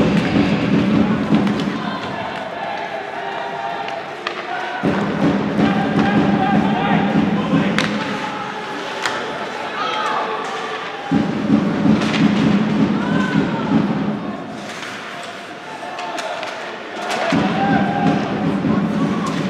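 Ice hockey sticks clack against a puck.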